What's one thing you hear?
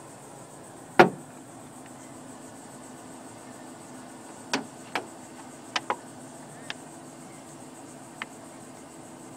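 A hand knocks and taps on a van's window frame.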